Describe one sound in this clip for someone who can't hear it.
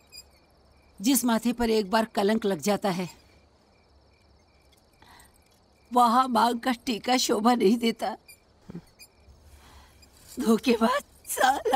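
An elderly woman speaks close by with emotion.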